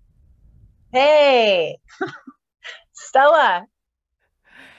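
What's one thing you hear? Two women laugh together over an online call.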